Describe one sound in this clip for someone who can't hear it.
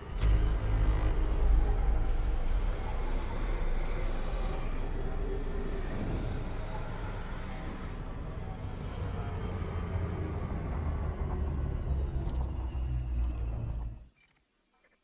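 A spaceship's engines rumble deeply and steadily, then cut off abruptly.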